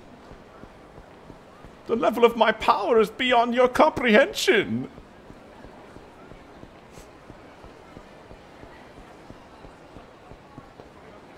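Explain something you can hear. Running footsteps slap on pavement.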